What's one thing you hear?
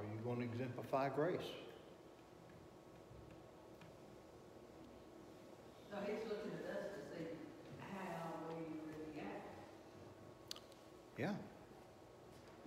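An older man speaks calmly, lecturing in a room with slight echo.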